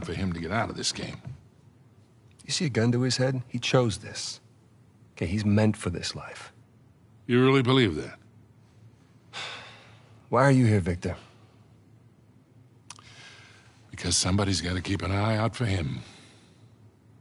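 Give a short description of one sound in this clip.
An older man speaks in a low, gravelly voice.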